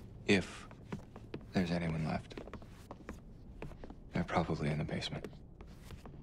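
A young man speaks quietly and tensely nearby.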